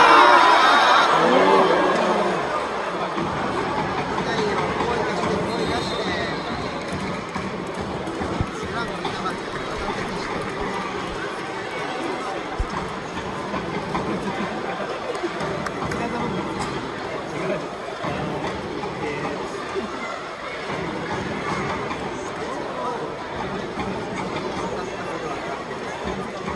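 A stadium crowd cheers loudly, then settles into a steady murmur.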